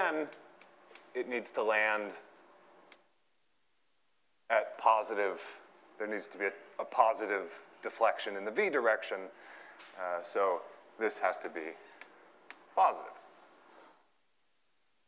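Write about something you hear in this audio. A man lectures calmly through a microphone in a large echoing room.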